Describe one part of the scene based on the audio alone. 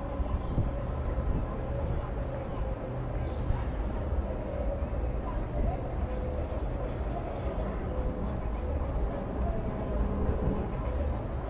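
Choppy water splashes against a boat's hull.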